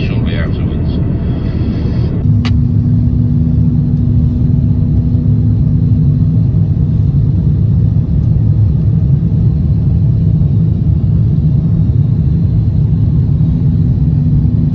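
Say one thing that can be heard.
Jet engines and rushing air roar steadily and low inside an aircraft cabin.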